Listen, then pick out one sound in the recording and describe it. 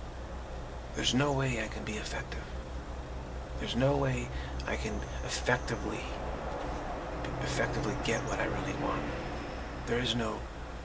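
A middle-aged man speaks calmly and haltingly, close to the microphone.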